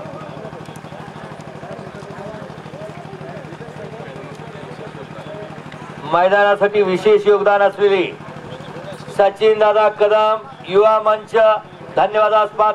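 A large crowd murmurs outdoors.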